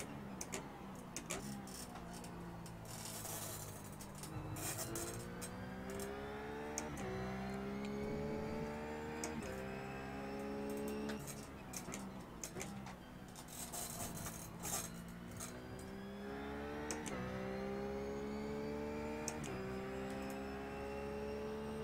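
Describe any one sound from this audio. A race car engine accelerates hard through the gears, rising in pitch and dropping at each upshift.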